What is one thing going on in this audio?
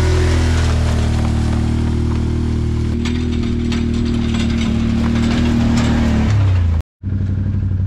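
An all-terrain vehicle engine drones as it drives through a field.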